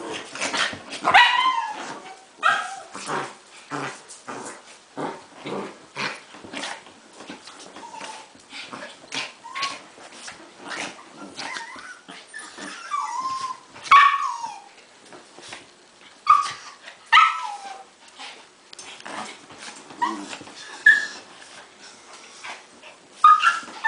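Small dogs yelp and whine in short bursts.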